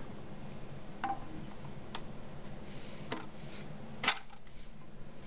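Plastic parts click and knock.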